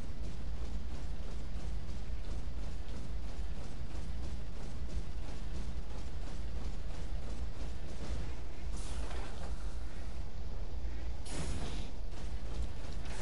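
Heavy metal footsteps clank in a steady rhythm.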